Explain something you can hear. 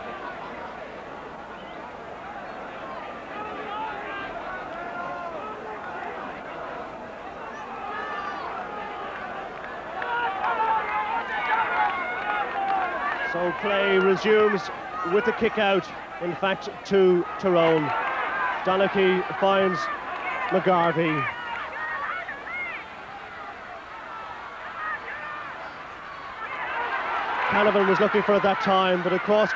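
A large crowd cheers and roars outdoors.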